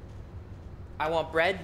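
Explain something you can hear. A young woman exclaims loudly nearby.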